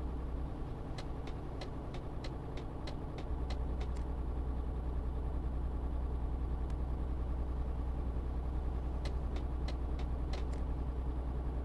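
Ticking clicks sound in quick bursts from a turn signal.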